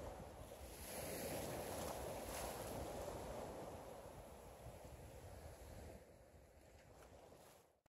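Sea water splashes and sloshes close by, fading toward the end.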